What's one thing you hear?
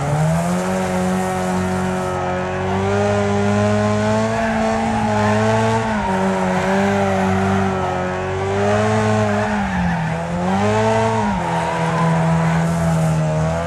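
A car engine roars and revs up and down steadily.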